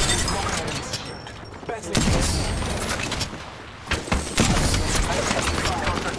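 A rifle fires.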